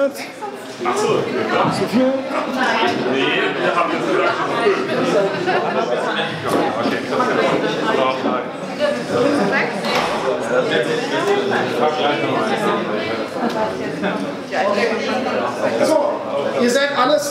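A man speaks calmly and steadily nearby, explaining at length.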